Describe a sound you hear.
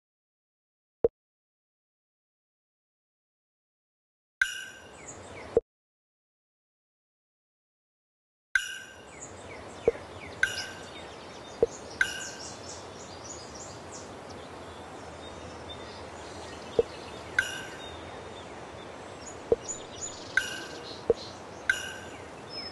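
Short pops sound as track pieces snap into place.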